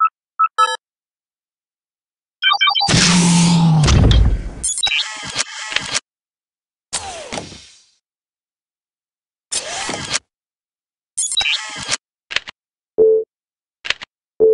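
Short electronic beeps chirp.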